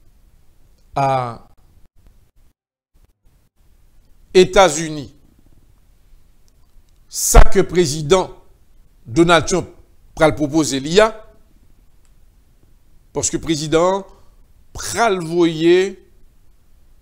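A middle-aged man speaks calmly and clearly into a microphone, in short phrases with pauses.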